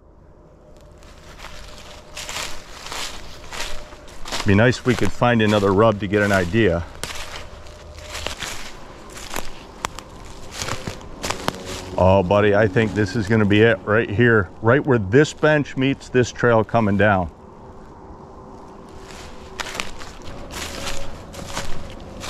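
Footsteps crunch through dry leaves on a forest floor.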